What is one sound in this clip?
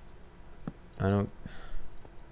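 A young man says a few words briefly and loudly into a close microphone.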